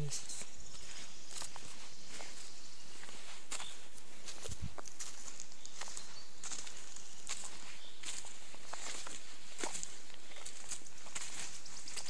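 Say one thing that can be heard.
Footsteps crunch on dry leaves and dirt.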